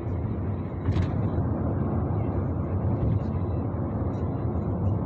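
A car engine hums steadily with road rumble from inside the moving car.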